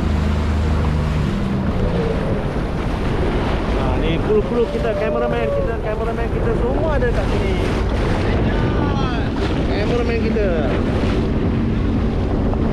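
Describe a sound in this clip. A boat's outboard motor hums and fades as the boat pulls away.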